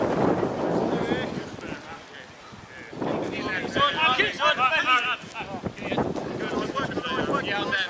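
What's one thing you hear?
Men shout to one another across an open field, heard from a distance.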